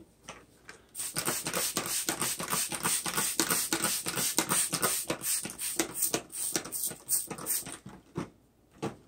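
A trigger spray bottle sprays mist in quick bursts.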